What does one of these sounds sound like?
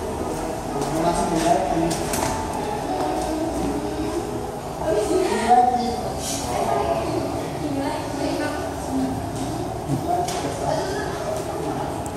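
A young woman speaks into a microphone, heard through a loudspeaker in an echoing room.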